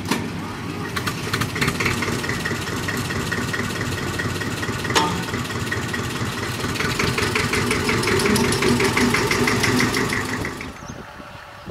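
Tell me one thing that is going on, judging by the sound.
A small diesel locomotive engine chugs steadily close by.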